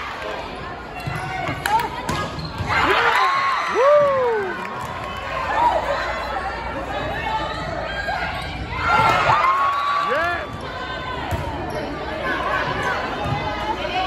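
A crowd cheers and shouts in the stands.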